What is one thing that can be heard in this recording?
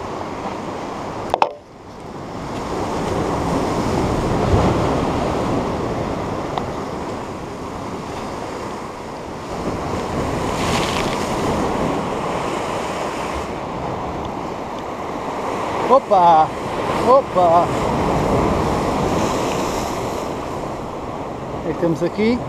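Sea waves crash and wash against rocks.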